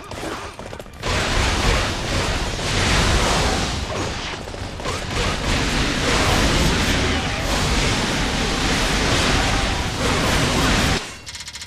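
Swords clash and strike over and over in a noisy battle.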